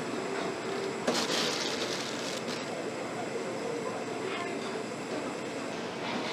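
Plastic bags rustle as raw meat is handled.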